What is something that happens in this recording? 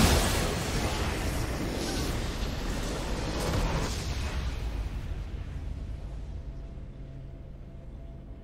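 A triumphant game fanfare plays and slowly fades.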